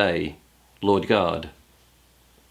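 A middle-aged man speaks calmly and close to the microphone.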